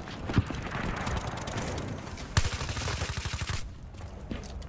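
A suppressed rifle fires rapid bursts.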